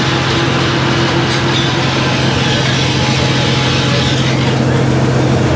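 A saw blade whines through wood.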